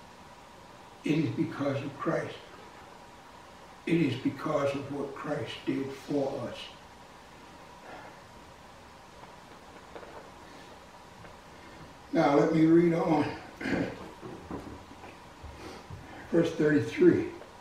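An elderly man speaks slowly and calmly with pauses, close by.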